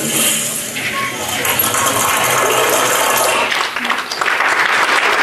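Dancers' rattles shake rhythmically.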